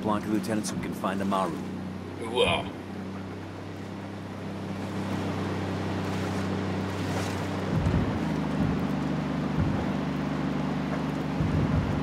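A pickup truck engine hums steadily as it drives.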